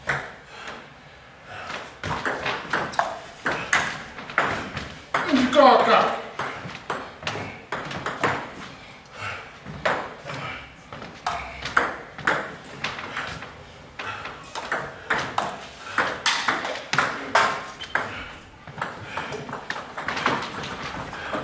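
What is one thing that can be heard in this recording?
Men talk casually in a large echoing room.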